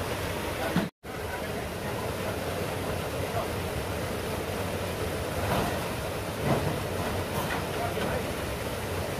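A waterfall rushes and splashes nearby.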